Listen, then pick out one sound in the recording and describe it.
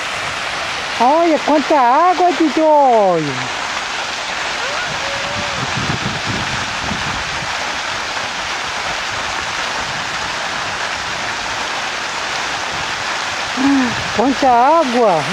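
A toddler squeals and babbles in a high voice close by.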